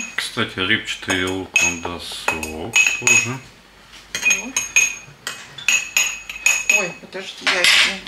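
A spoon clinks against ceramic bowls.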